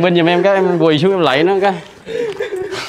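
A man laughs loudly nearby.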